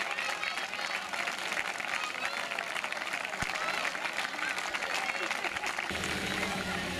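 A large crowd of children claps.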